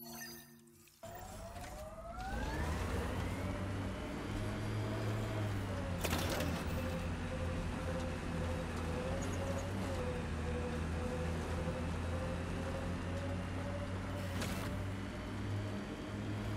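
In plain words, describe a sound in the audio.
Tyres crunch over rough ground.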